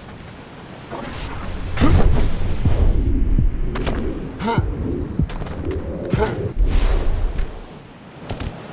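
Hands scrape and grip on stone while climbing.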